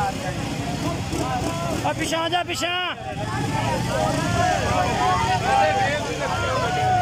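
Motorcycle engines rumble close by.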